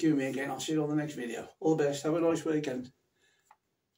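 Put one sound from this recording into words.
A middle-aged man speaks close by, talking directly and with animation.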